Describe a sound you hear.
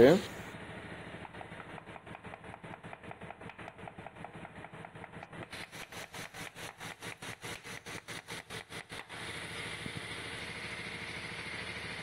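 A stiff brush scrubs with quick, repeated strokes.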